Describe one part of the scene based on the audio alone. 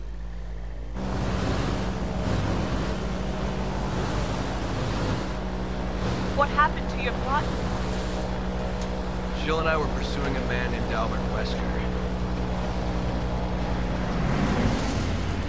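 An airboat engine roars loudly over water.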